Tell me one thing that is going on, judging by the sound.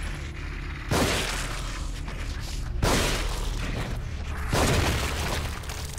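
Gunshots blast loudly.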